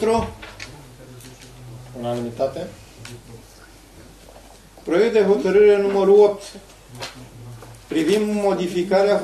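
A man speaks into a microphone in a room with some echo.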